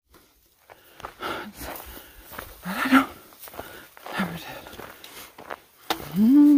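Footsteps crunch along a dry dirt path.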